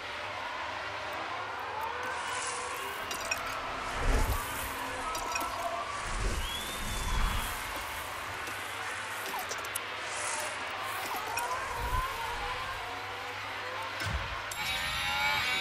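Racing car engines whine and roar as they speed past.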